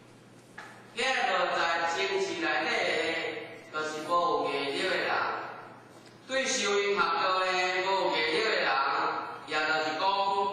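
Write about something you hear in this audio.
A middle-aged man speaks calmly and clearly, as if teaching.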